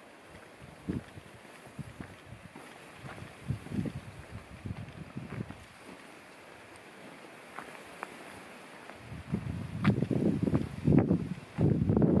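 Wind gusts and rustles through roadside bushes.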